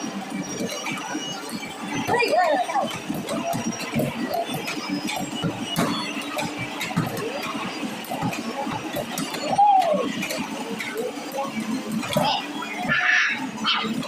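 A racing arcade game's car engine roars loudly through loudspeakers.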